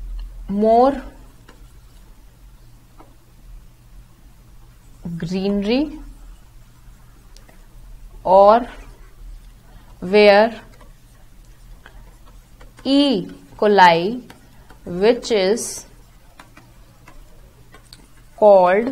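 A young woman speaks calmly and slowly into a close microphone, with long pauses.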